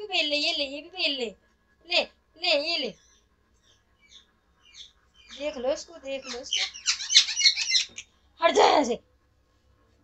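A parrot chatters and squawks close by.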